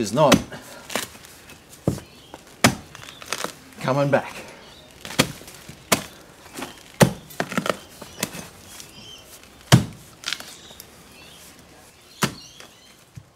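A mattock chops into hard soil and roots with dull thuds.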